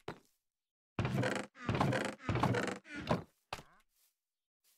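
A wooden chest creaks open and shut.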